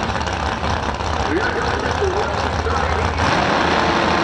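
Two drag racing engines idle with a deep, rough rumble.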